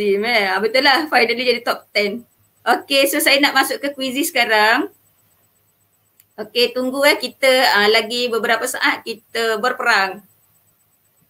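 A middle-aged woman talks calmly through a headset microphone.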